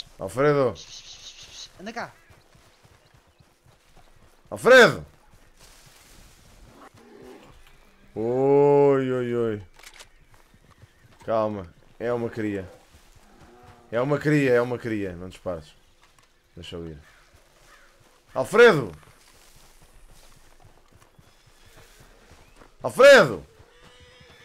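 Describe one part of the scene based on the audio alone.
A man talks animatedly into a close microphone.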